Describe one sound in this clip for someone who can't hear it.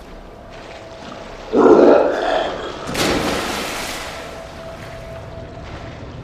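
Water sloshes and splashes as a man wades through it.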